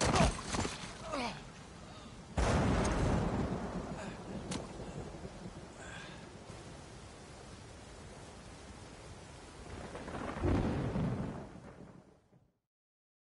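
A waterfall rushes and splashes loudly nearby.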